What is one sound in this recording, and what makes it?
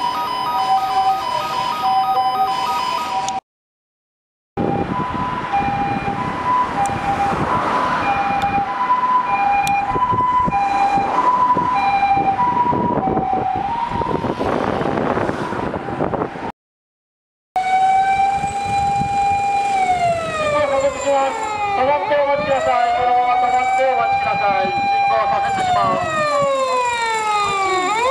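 Traffic rumbles along a road.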